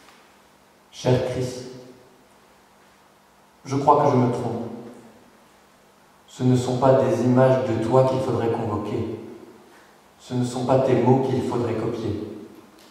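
A man speaks calmly into a microphone in bursts.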